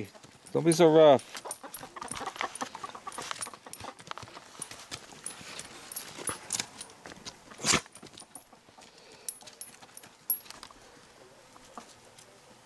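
Dogs' paws scuffle on dry dirt.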